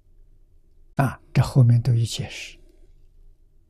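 An elderly man speaks calmly and slowly into a nearby microphone.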